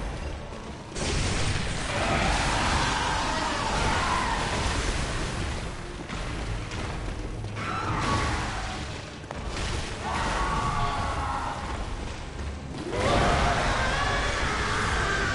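Blades clash and slash with heavy impacts.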